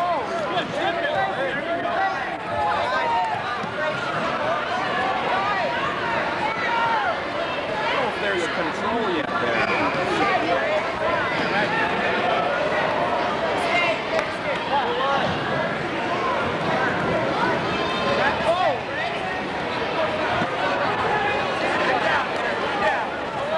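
A large crowd chatters and shouts throughout an echoing hall.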